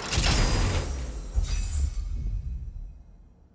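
A heavy metal chest lid creaks open.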